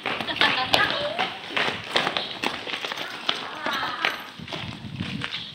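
Young girls shout and laugh with excitement nearby.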